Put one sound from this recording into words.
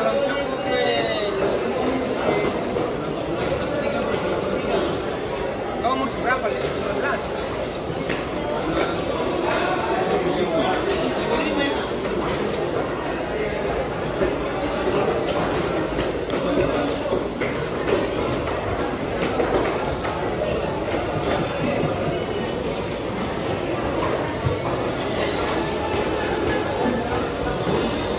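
A busy crowd chatters throughout a large open hall.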